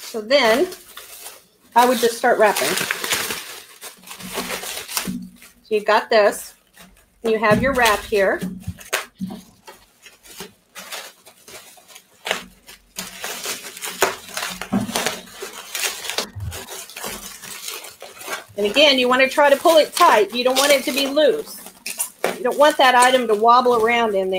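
Plastic bubble wrap crinkles and rustles as it is handled.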